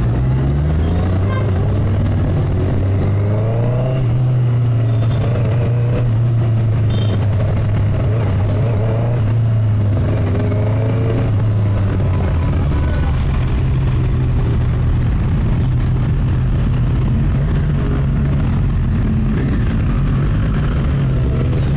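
A motorcycle engine hums steadily close by, rising and falling in pitch as it speeds up and slows down.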